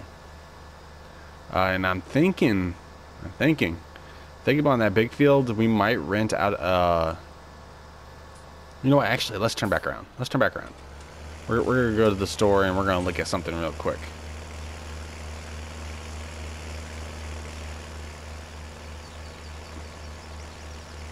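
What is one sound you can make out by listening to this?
A tractor engine hums steadily as it drives along.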